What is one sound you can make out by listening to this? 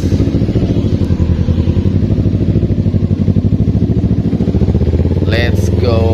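A motorcycle engine idles with a fast, throbbing beat.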